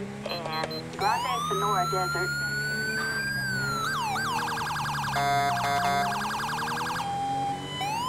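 A police siren wails and yelps loudly.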